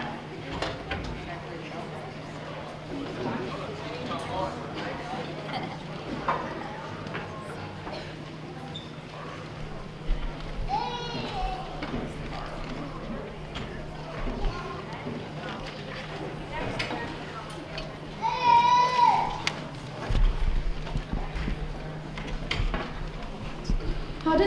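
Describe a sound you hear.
An audience murmurs and chatters in a large echoing hall.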